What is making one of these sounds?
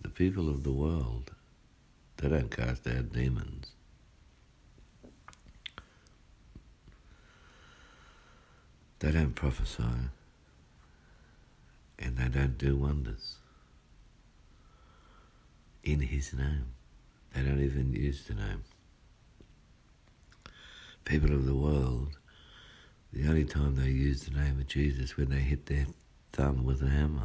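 A man speaks close by, calmly, in short bursts with pauses.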